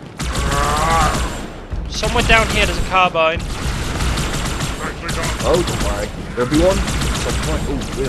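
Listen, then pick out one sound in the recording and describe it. A plasma gun fires bursts of crackling shots.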